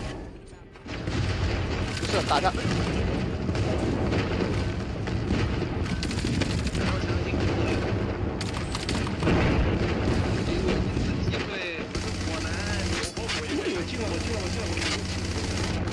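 Gunshots fire rapidly.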